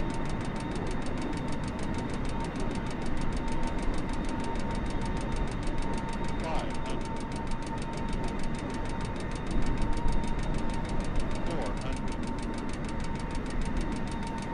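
Jet engines roar steadily as an airliner flies past.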